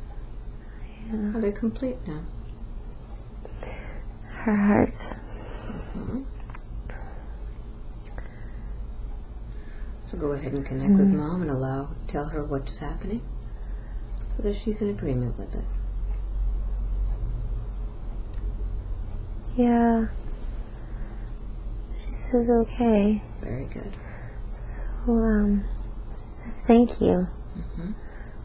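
A woman moans and speaks weakly, close by.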